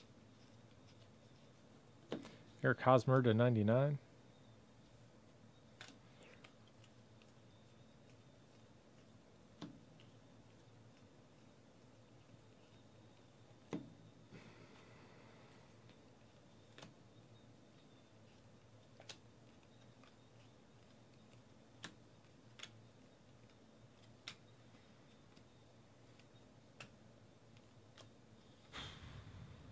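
Trading cards are flicked and shuffled by hand, with soft clicks.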